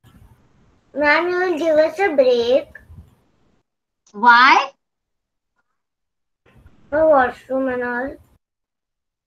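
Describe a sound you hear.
A young girl speaks calmly through an online call.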